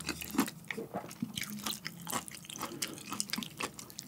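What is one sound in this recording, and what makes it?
A spoon scrapes a ceramic bowl.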